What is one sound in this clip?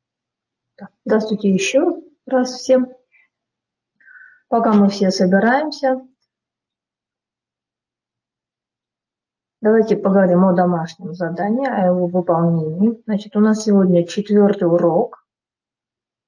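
A woman speaks calmly into a microphone, heard through an online call.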